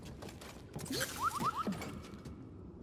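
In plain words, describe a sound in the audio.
A small robot beeps and chirps.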